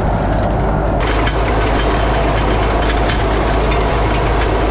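A planting machine rattles and clanks as it runs.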